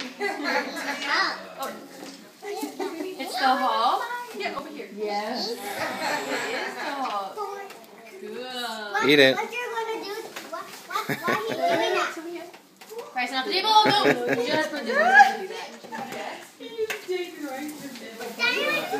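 Young children chatter and shout excitedly close by.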